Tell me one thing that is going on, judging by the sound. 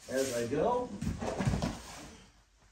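A body thuds onto a padded mat.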